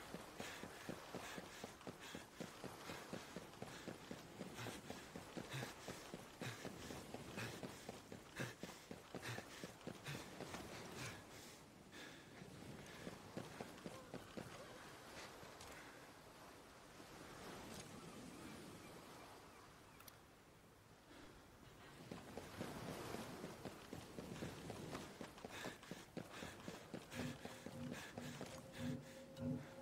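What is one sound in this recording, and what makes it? Footsteps pad quickly on hard ground.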